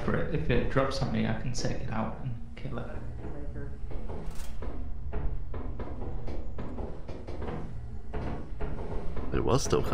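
Footsteps clank on a metal grating floor.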